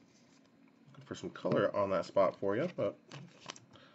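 A plastic wrapper crinkles as hands handle it.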